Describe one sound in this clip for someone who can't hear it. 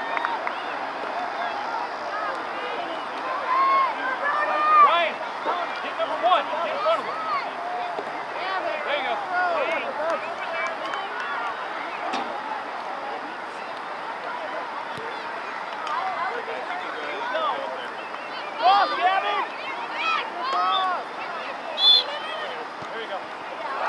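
A crowd of spectators and young players shouts and cheers outdoors at a distance.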